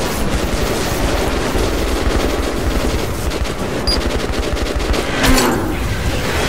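A flamethrower roars and hisses.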